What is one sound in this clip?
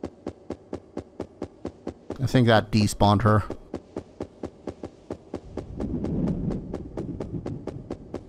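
Footsteps tread at a quick, steady pace.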